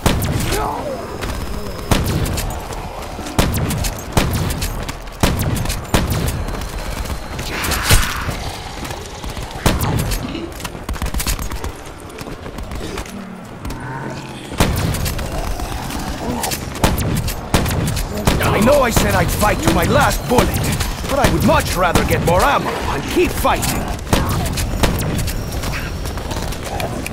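Shotgun blasts boom in quick bursts.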